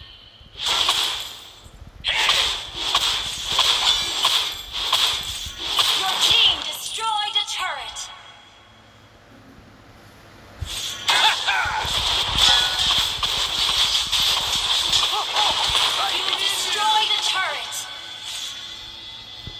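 Game sound effects of spells and blows crash and whoosh in quick bursts.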